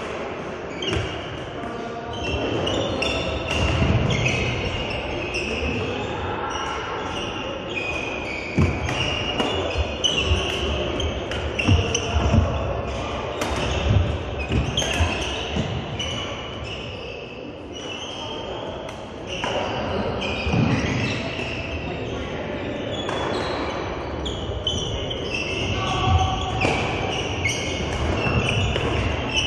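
A crowd of players and onlookers chatters in the background.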